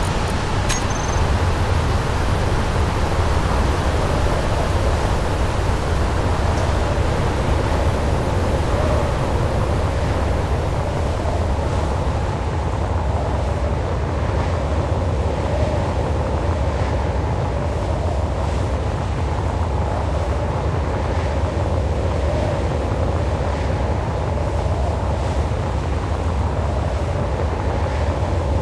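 A low engine hum drones steadily.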